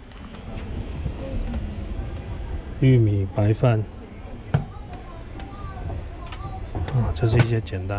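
A metal lid clanks as it is lifted off a food warmer.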